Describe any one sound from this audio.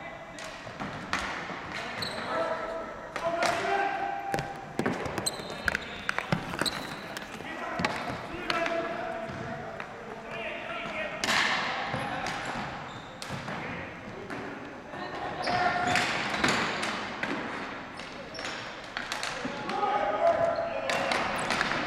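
Players' shoes squeak on the gym floor.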